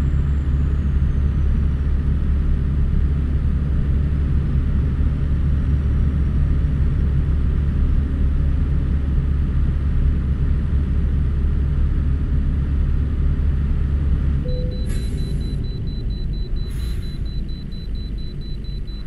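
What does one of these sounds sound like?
A truck engine drones steadily while driving at speed.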